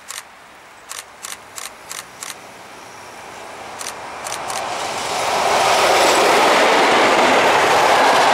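A train rolls closer and roars loudly past.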